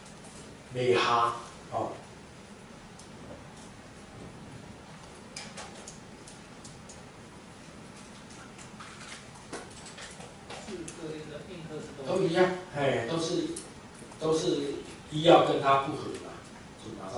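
An elderly man speaks loudly with animation, close by.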